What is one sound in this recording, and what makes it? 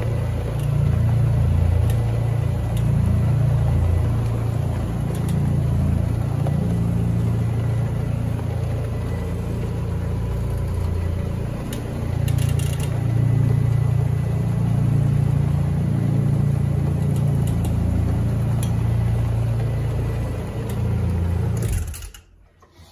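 A floor machine motor hums loudly and steadily, then cuts off.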